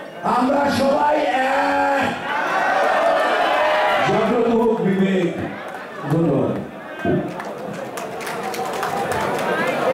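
A middle-aged man speaks loudly and passionately into a microphone through loudspeakers in an echoing room.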